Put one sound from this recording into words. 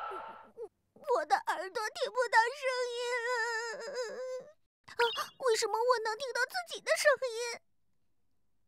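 A young girl's voice sobs and speaks tearfully, close by.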